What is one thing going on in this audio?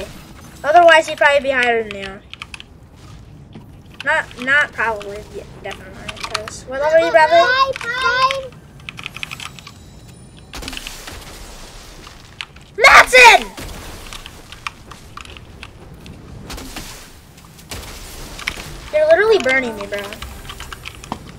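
A young girl talks with animation into a nearby microphone, in short bursts.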